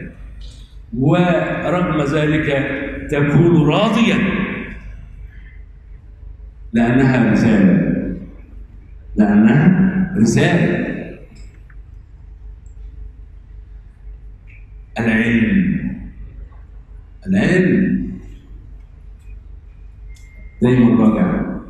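An elderly man speaks calmly into a microphone, in phrases with pauses.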